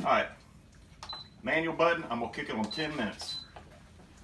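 An electric cooker beeps as its buttons are pressed.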